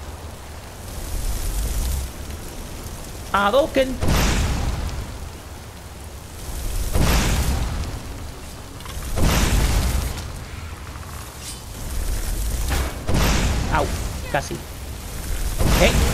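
Magic fire bursts with roaring whooshes, again and again.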